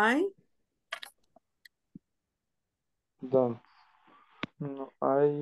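A woman speaks in short phrases over an online call.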